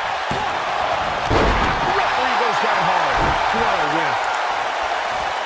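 A crowd cheers and roars loudly in a large arena.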